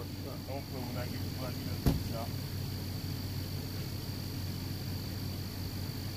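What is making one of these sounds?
A small engine idles steadily.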